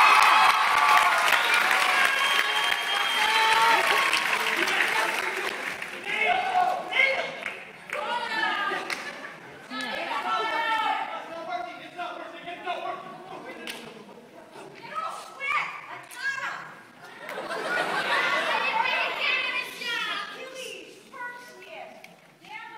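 Young performers speak and call out loudly from a distant stage in a large echoing hall.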